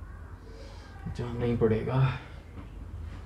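A man speaks drowsily, close by.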